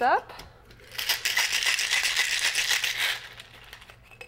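Ice rattles in a cocktail shaker being shaken hard.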